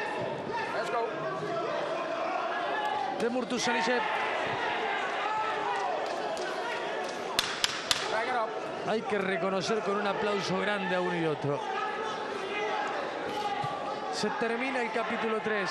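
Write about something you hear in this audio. A man commentates with animation over a microphone.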